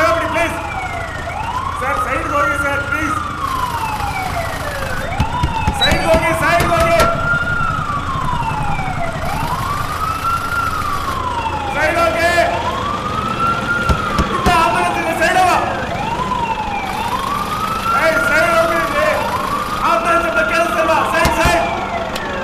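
An ambulance siren wails loudly, rising and falling over and over.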